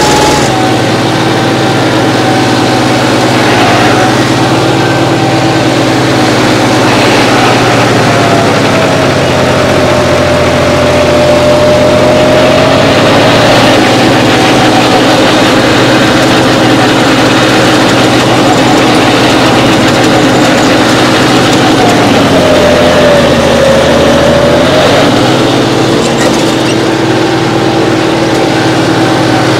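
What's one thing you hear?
A harrow scrapes and churns through dry soil.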